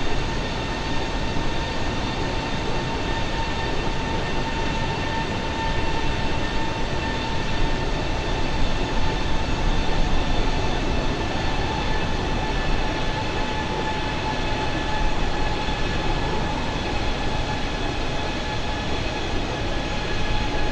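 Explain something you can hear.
A jet airliner's engines roar and whine steadily.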